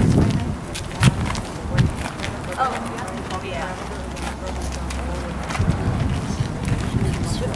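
A woman speaks calmly outdoors, a short distance away.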